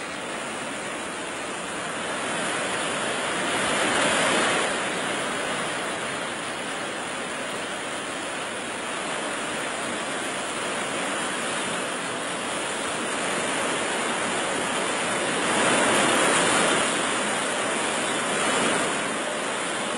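Water roars steadily as it gushes down a dam's spillway.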